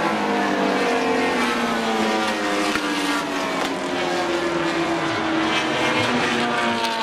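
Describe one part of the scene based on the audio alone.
Race car engines roar loudly as the cars speed around a track.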